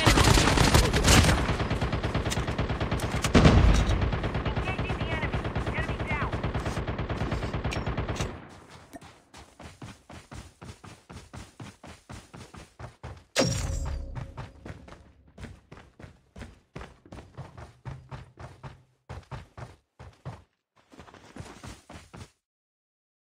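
Quick footsteps run over grass and then over wooden boards.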